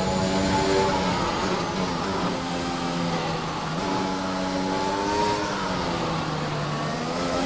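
A racing car engine roars at high revs, its pitch rising and falling through gear changes.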